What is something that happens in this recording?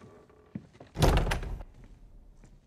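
A door bangs open.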